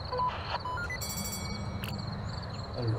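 A short electronic chime sounds as a menu opens.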